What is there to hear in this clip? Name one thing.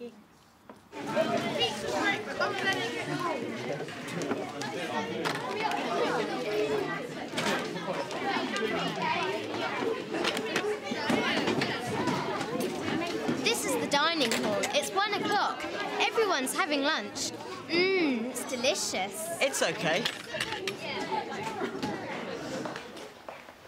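Many young people chatter in a busy, echoing hall.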